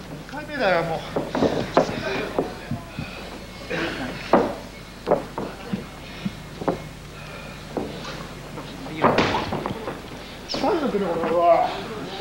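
Spectators in a large echoing hall shout out and call to the wrestlers.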